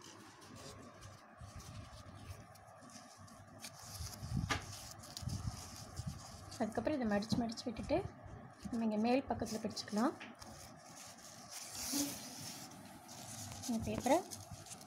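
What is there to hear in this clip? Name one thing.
Hands fold and crinkle a strip of ribbon.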